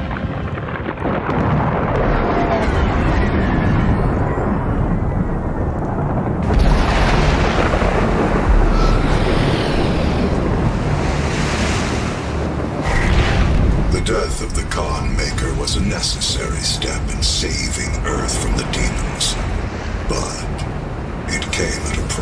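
Strong wind roars.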